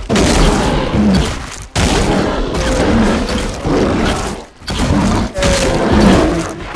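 A large animal growls and roars loudly in repeated bursts.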